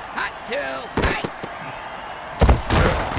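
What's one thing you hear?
Armoured players crash into each other with heavy thuds.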